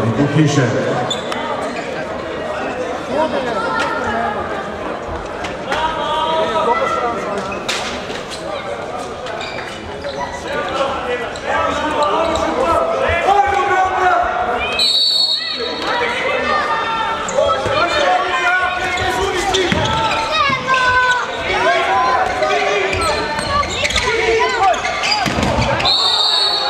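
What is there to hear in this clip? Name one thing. Players shout and call to each other in a large echoing hall.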